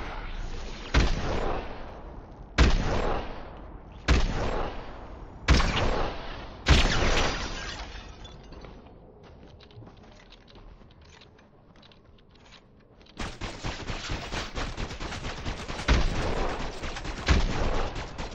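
A rifle fires single loud shots that echo away.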